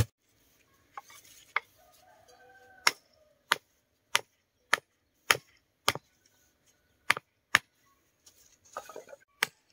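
A hammer knocks on wood.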